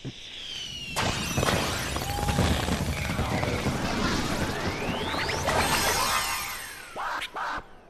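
Fireworks whistle upward and burst with loud crackling.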